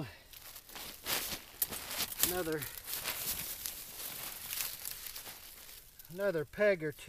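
A tarp rustles and crinkles as it is spread out.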